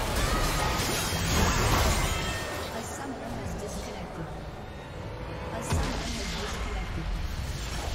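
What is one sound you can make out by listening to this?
Game combat effects clash and crackle.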